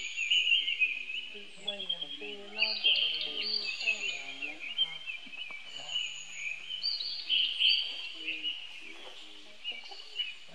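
Monkeys squeal and chatter close by.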